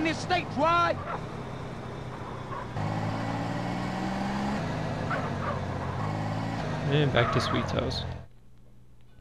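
A car engine revs and hums steadily, then cuts off.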